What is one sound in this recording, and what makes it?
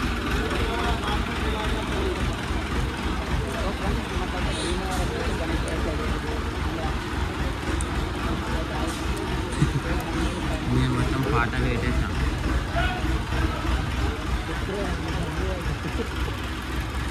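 Men talk and call out in a noisy outdoor crowd.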